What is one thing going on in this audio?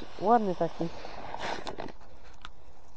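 A plastic bag rustles as pellets are poured out of it.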